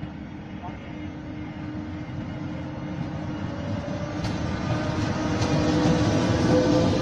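An electric locomotive approaches and hums as it passes.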